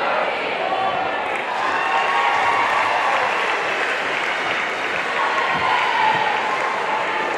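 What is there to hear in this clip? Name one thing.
A crowd chatters and murmurs throughout a large echoing gym.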